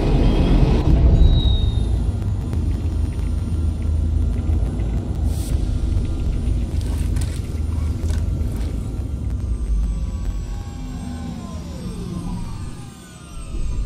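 A heavy vehicle engine rumbles loudly, then dies away.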